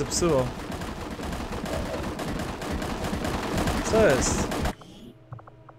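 Loud battle noise with blasts and rumbling plays, then cuts off.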